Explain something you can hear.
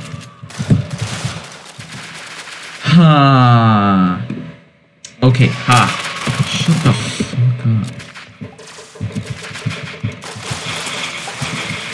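Shotgun blasts boom in quick bursts.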